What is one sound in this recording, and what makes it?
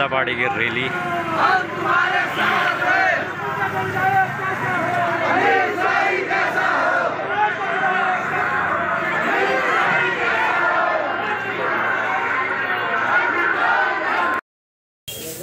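A crowd of men and women chants slogans loudly outdoors.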